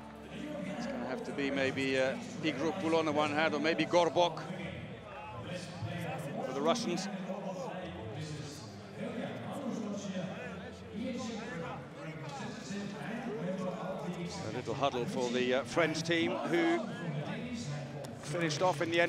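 Several men talk and shout together in a huddle, echoing in a large hall.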